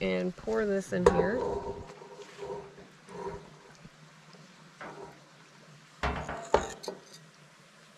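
A whisk scrapes and taps against a metal pan.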